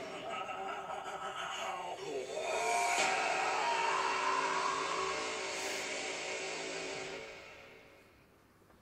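Dramatic music plays from a laptop's small speakers and fades out.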